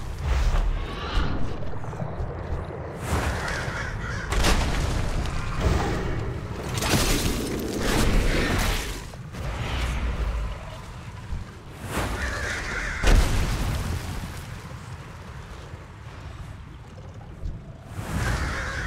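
Spell blasts and weapon impacts crash in a fight with a large monster.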